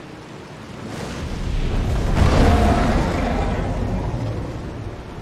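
A huge dragon roars loudly.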